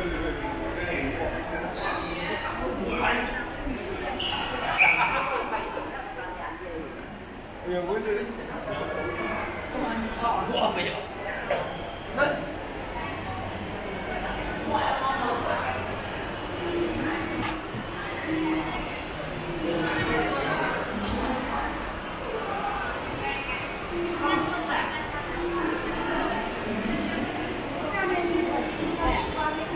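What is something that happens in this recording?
Voices of distant people murmur and echo through a large indoor hall.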